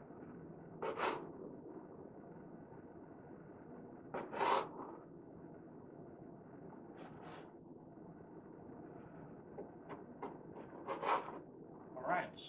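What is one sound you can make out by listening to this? A knife saws through soft bread on a wooden board.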